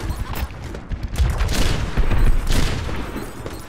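Explosions boom in short blasts.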